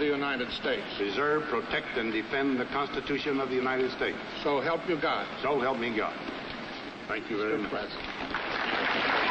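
An elderly man speaks solemnly through a microphone outdoors.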